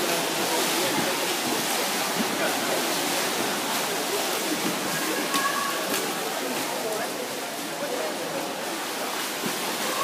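Swimmers splash through the water swimming butterfly, in an echoing indoor pool hall.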